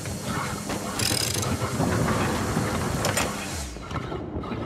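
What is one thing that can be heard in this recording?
A vacuum whooshes loudly, pulling at a heavy desk.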